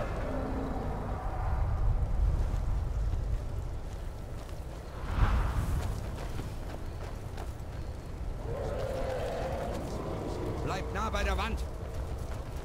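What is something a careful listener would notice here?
Fire roars with a low, steady rumble.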